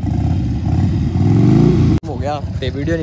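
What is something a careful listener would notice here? A motorcycle engine revs up loudly nearby.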